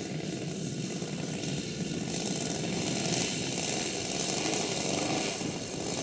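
A model plane's engine buzzes steadily as it taxis closer, growing louder.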